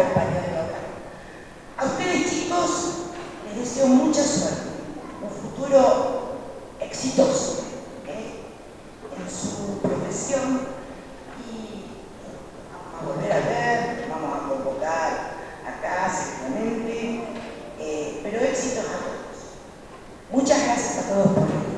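An elderly woman speaks calmly into a microphone, heard through a loudspeaker.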